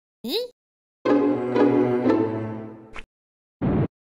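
A short game-over jingle plays.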